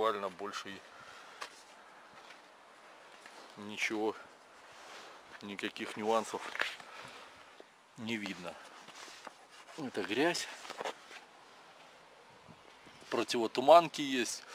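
A man speaks calmly in short phrases close to the microphone.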